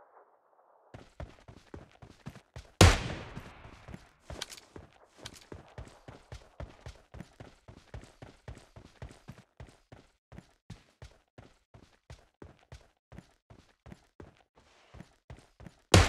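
Footsteps crunch steadily over grass and dirt.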